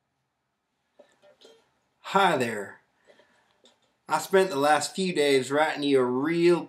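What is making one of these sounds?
A mandolin is strummed.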